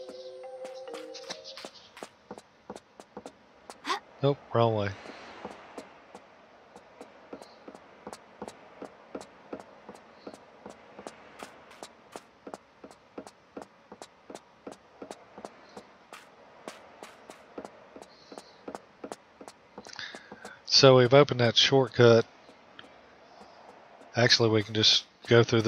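Quick footsteps tap steadily on a wooden floor as a figure runs.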